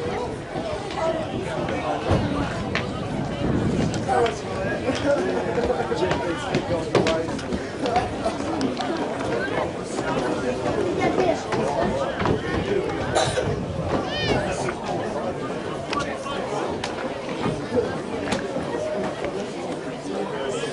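Rugby players shout and call to each other across an open field.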